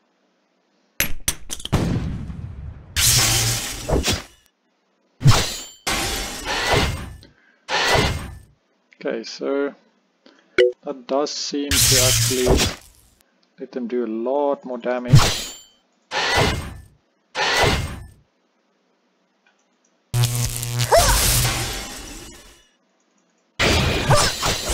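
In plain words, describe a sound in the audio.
Energy blasts and weapons fire burst again and again.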